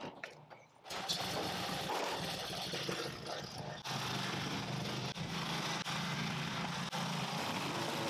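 A lawn mower engine runs with a low steady drone.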